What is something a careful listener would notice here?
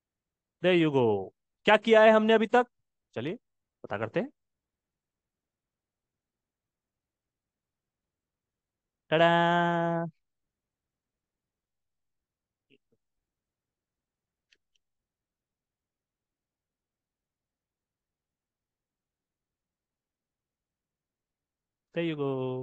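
A young man speaks calmly into a microphone, close by.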